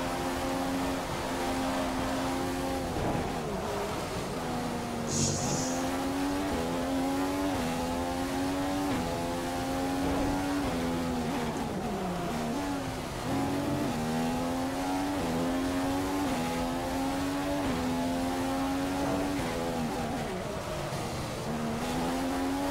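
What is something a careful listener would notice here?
A racing car engine screams at high revs, rising through the gears and dropping sharply when braking.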